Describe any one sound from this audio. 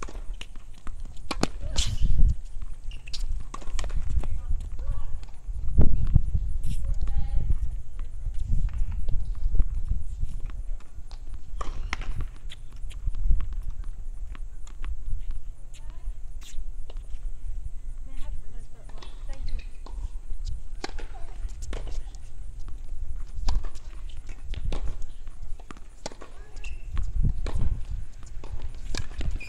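A tennis ball bounces on a hard court.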